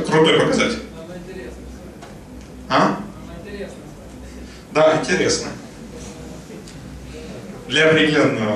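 A young man speaks in bursts through a microphone and loudspeakers in an echoing hall.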